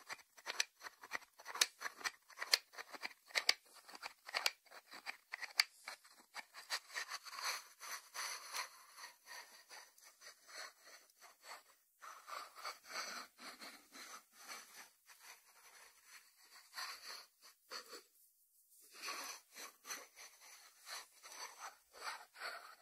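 Fingernails tap on a ceramic lid.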